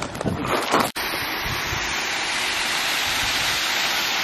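A waterfall splashes and rushes steadily.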